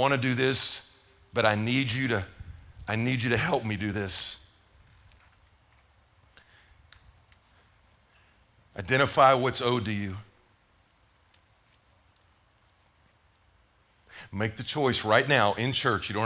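A middle-aged man speaks with animation into a microphone, in bursts with long pauses.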